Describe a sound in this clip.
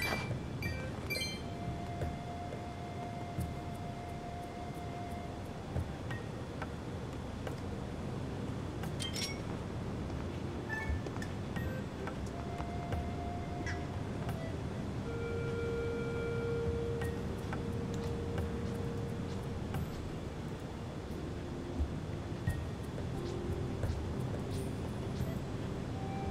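Game sound effects chime and ring.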